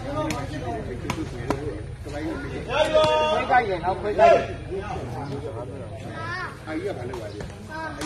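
A large crowd of men talks and shouts outdoors.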